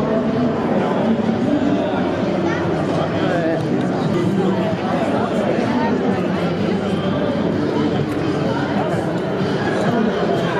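A crowd of people chatter all around in a large, echoing hall.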